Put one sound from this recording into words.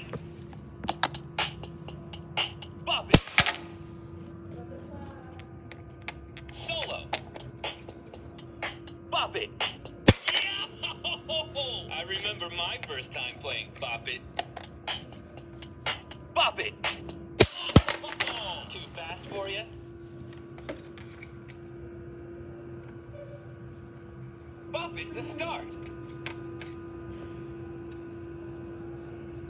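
A handheld electronic toy plays short electronic sounds.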